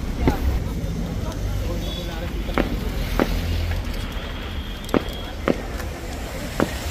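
Footsteps tread on pavement.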